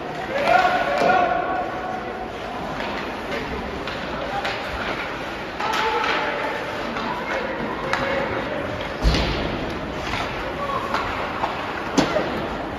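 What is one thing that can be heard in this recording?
Hockey sticks smack a puck with sharp clacks in an echoing rink.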